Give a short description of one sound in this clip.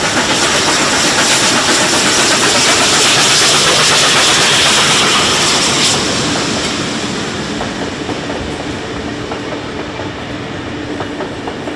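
A steam locomotive hisses loudly as it blows off steam.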